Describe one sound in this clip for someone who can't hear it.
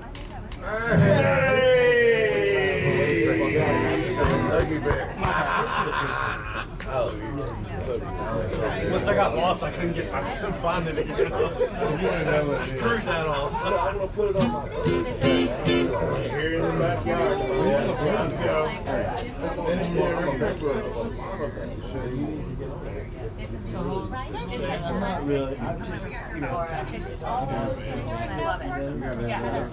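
An upright bass plays a low line.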